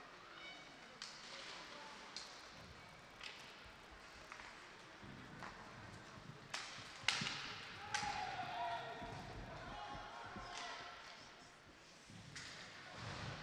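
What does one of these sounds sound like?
Hockey sticks clack sharply against a puck and the boards.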